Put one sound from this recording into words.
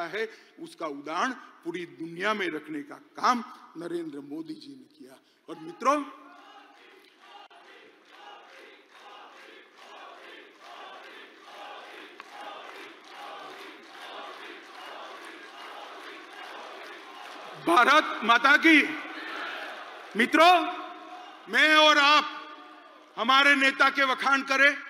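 A man speaks forcefully through a loudspeaker in a large hall.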